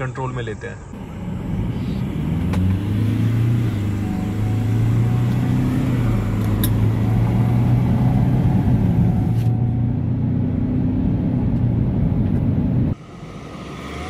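A car engine revs up steadily as the car accelerates.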